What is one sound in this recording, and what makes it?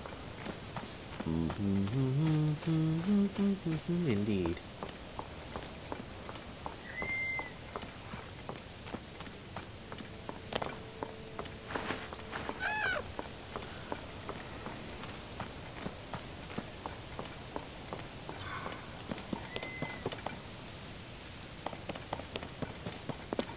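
Footsteps crunch over grass and stone.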